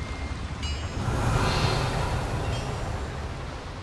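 A magical whoosh bursts out loudly and fades.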